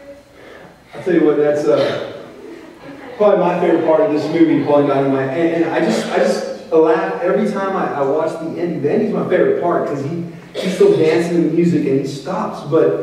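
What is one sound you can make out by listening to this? A man speaks with animation over a microphone.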